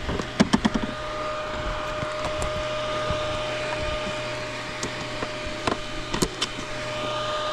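A gloved hand knocks and clicks against a motorbike's handlebar.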